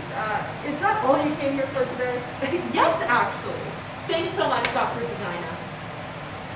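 A young woman speaks with animation in a large, echoing room.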